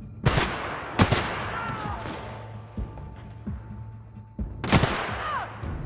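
A pistol fires loud, sharp shots that ring out briefly.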